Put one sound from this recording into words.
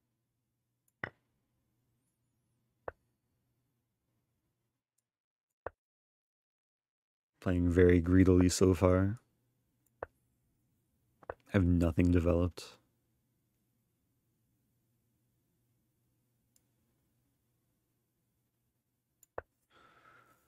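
Short sharp clicks sound as chess moves are made.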